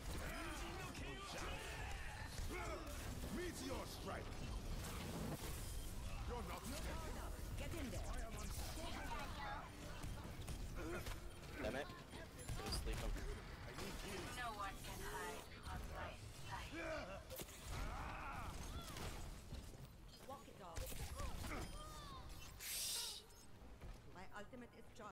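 Video game combat sounds crash and boom with heavy punches and blasts.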